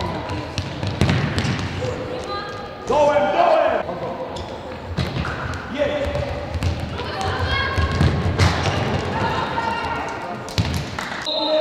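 A ball thuds against the floor and is kicked.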